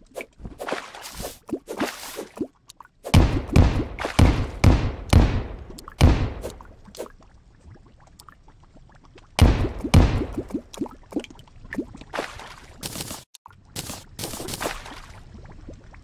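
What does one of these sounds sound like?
Pickaxe blows chip and crumble through stone and dirt in quick bursts.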